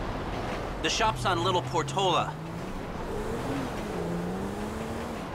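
A car engine hums and rises in pitch as the car drives off.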